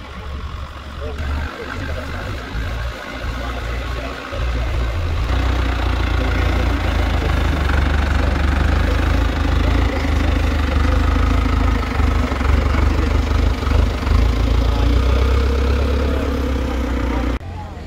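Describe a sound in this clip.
An off-road vehicle's engine labours and revs as it climbs a dirt slope.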